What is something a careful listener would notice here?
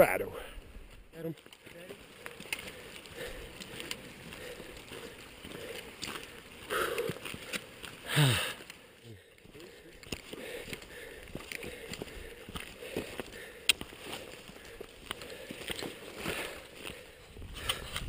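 Footsteps crunch on a dirt trail.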